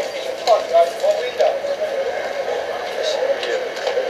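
Metal objects clink as a man rummages through a crate.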